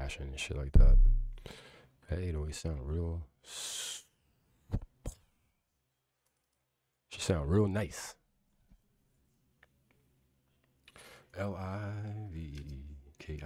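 A man speaks close to a microphone in short bursts, with pauses.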